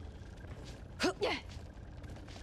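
A short swooping whoosh sounds in a video game.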